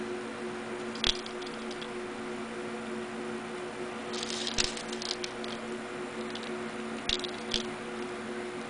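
Small metal pieces clink softly as they are sorted by hand.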